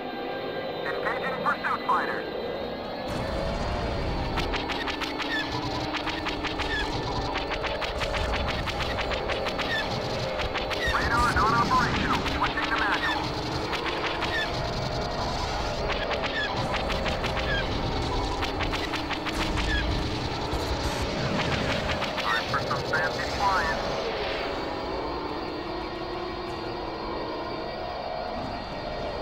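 A spacecraft engine hums and roars steadily.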